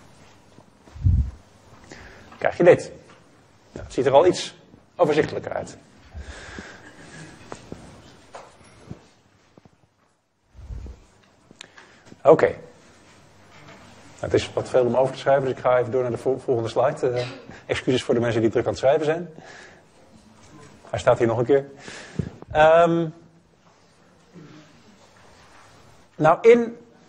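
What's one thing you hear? A man lectures calmly through a microphone, with pauses between phrases.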